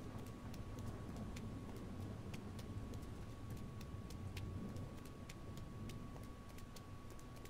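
Footsteps tap steadily on a hard metal floor.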